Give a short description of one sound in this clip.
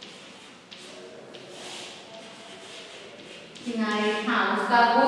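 Chalk scratches and taps on a chalkboard.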